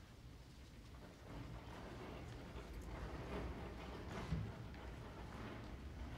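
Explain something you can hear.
An audience rustles and shifts quietly in a large echoing hall.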